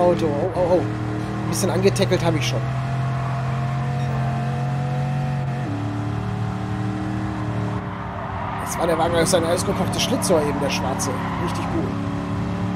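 A racing car engine roars at a steady high pitch.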